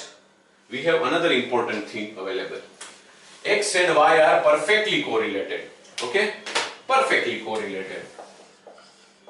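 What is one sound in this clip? A man lectures clearly, close to a microphone.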